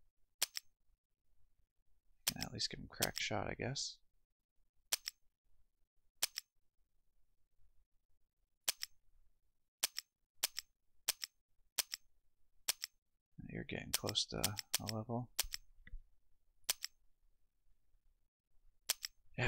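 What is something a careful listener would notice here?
Short game menu clicks sound again and again.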